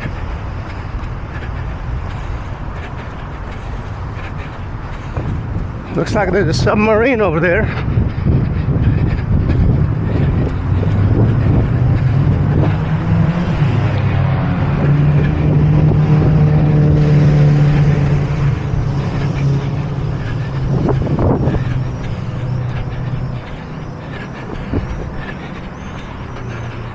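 Wind blusters outdoors, rumbling low and unevenly.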